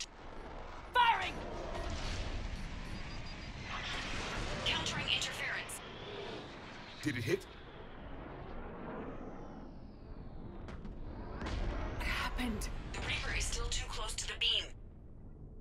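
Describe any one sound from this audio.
Explosions boom and rumble in a loud battle.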